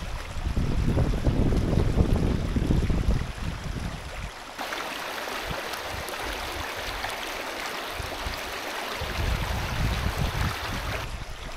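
A shallow stream rushes and splashes over rocks.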